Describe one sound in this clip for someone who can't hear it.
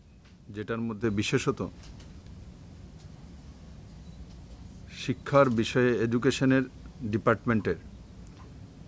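A man speaks calmly into microphones close by, in short bursts with pauses.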